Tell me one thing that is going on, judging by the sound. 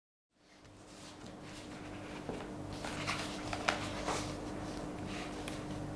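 Book pages rustle as they turn.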